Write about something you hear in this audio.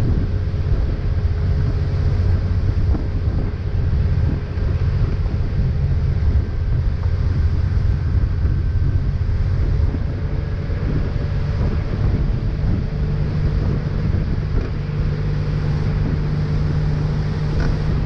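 A boat engine drones steadily at speed.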